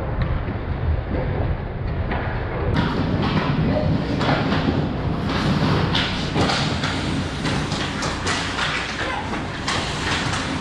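Skate blades scrape and carve across ice.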